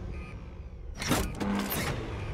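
A metal lever clunks as it is pulled down.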